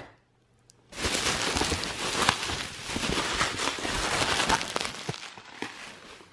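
Bubble wrap crinkles and rustles as hands pull it aside.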